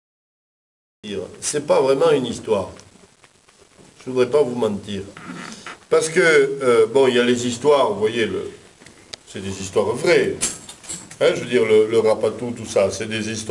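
A man tells a story with animation, close by.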